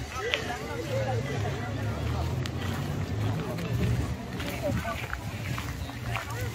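Men and women chatter at a distance outdoors.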